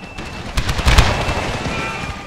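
A volley of musket fire crackles and pops.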